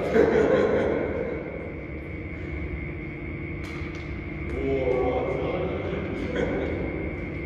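Badminton rackets hit a shuttlecock with sharp pops in a large echoing hall.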